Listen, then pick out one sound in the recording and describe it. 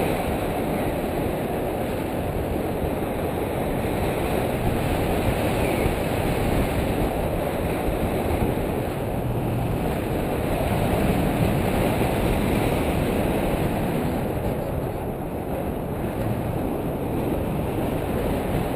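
Strong wind roars loudly past a microphone outdoors.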